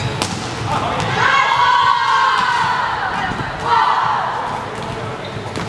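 Young women shout and cheer together.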